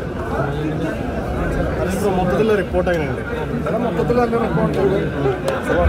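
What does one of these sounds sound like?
A man speaks close up, calmly.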